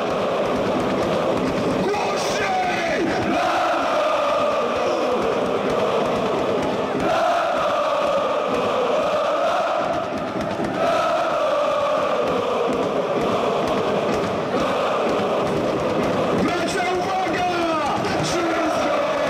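A large crowd of men and women sings a chant loudly together in a big echoing stadium.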